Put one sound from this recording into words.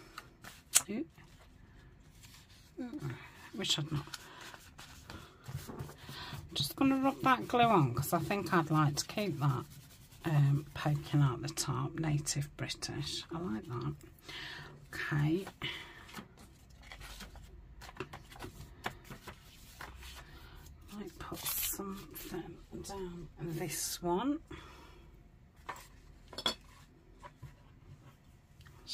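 Paper pages rustle and crinkle as they are handled and turned.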